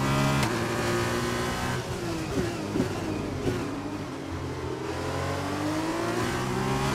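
A racing car engine screams at high revs, drops in pitch as the car brakes, then climbs again.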